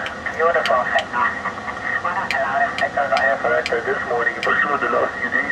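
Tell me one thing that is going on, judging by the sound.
Buttons on a keypad click as they are pressed.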